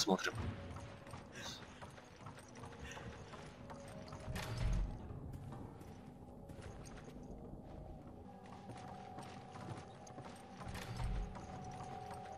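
Heavy footsteps thud across a wooden floor.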